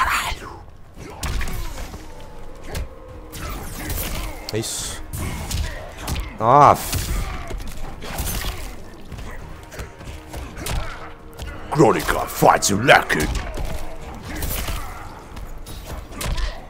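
Punches and kicks thud sharply in a fighting game.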